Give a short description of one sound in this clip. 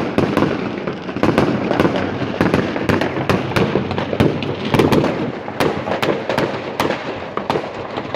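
Fireworks bang and crackle rapidly nearby.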